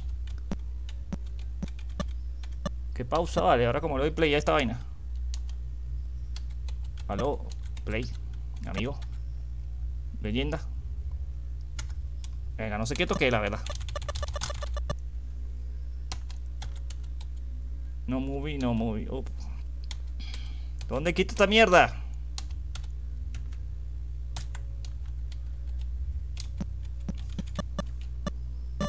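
Electronic blips of a retro arcade shooter game tick and beep.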